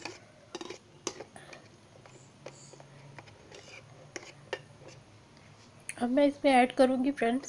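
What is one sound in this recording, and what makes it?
A metal spoon clinks and scrapes against a bowl.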